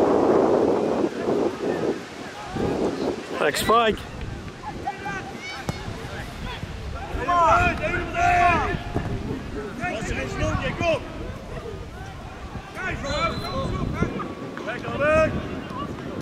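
Young men shout to each other outdoors across a field.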